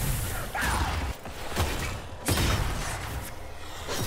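Lightning bolts crackle and zap.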